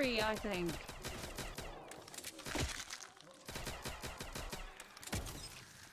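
Video game guns fire in rapid bursts.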